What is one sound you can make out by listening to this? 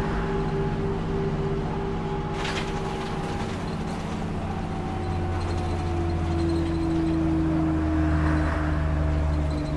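A bus engine hums steadily, rising slightly in pitch as it speeds up.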